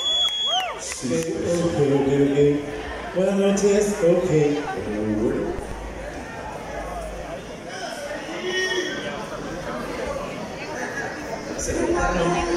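A man speaks loudly through a microphone over loudspeakers in a large echoing hall.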